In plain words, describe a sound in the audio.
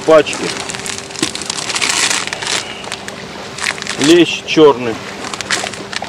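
Plastic packaging rustles in a man's hands.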